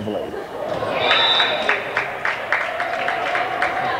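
Spectators cheer and clap.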